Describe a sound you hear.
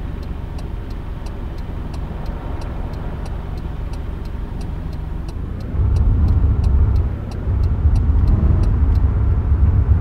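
A turn signal ticks rapidly.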